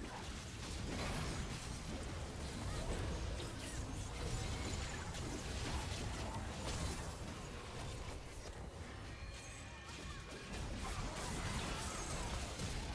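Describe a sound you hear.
Magic spells crackle and burst in a hectic fight.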